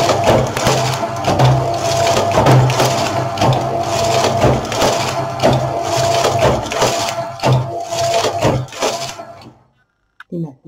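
A knitting machine carriage slides back and forth with a loud clattering whir.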